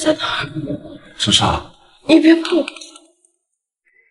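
A young woman speaks anxiously up close.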